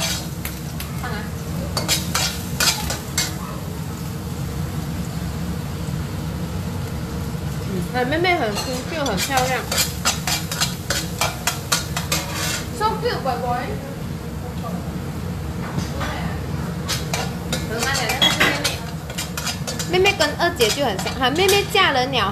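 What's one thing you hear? Sesame seeds sizzle softly in a hot pan.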